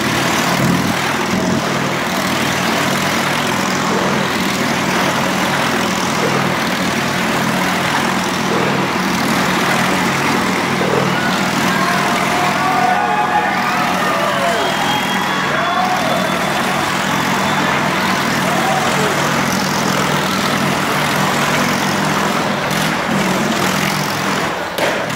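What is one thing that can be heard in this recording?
A motorcycle engine drones at steady throttle while circling around a wooden wall.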